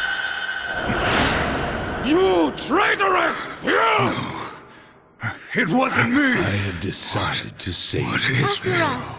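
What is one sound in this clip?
A young woman speaks with emotion.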